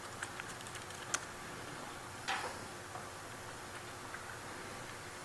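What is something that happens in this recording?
Keys click softly on a laptop keyboard.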